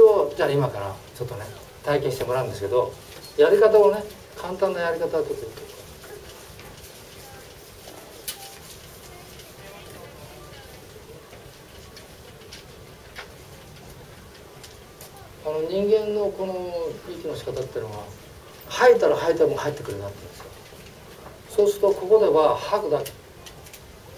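An elderly man speaks calmly and clearly, in pauses, close by.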